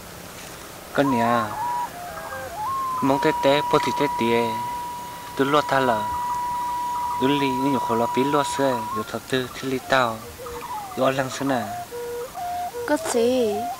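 A young man sings slowly and mournfully.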